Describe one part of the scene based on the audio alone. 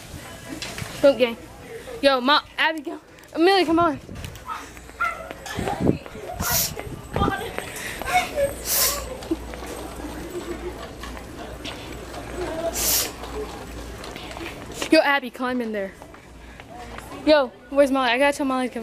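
A young girl speaks excitedly close by.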